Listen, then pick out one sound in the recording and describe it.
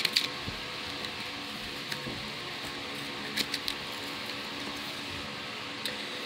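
Paper money rustles and crinkles in hands.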